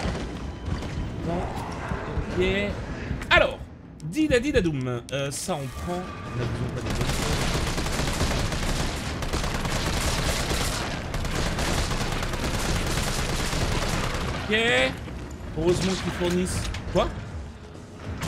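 Zombies groan and moan.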